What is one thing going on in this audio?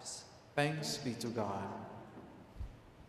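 A man speaks briefly, his voice echoing in a large hall.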